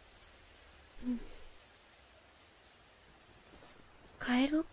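A young girl speaks briefly and brightly.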